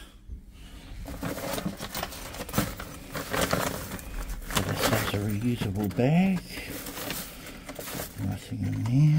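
Plastic bags rustle and crinkle close by.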